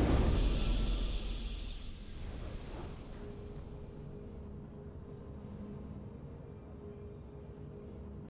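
Triumphant game music swells at the victory.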